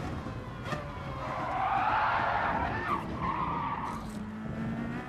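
Tyres squeal hard through a corner.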